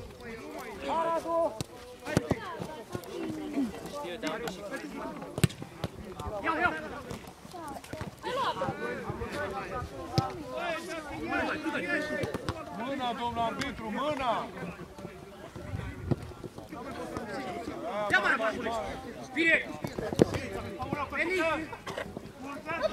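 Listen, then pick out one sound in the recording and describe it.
Men shout to each other across an open field outdoors.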